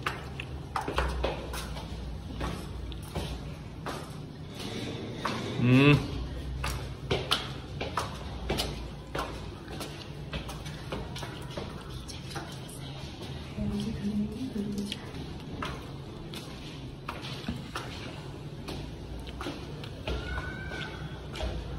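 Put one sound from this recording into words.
Footsteps tap on stairs.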